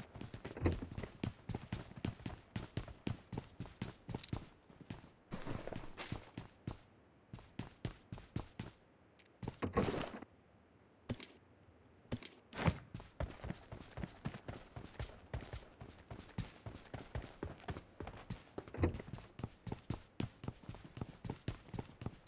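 Footsteps thud quickly on wooden boards and dirt.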